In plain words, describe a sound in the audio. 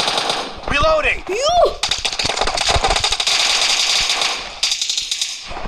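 Rapid rifle fire crackles in quick bursts.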